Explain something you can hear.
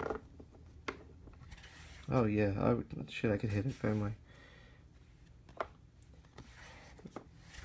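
Trading cards slide and rustle against each other in a hand.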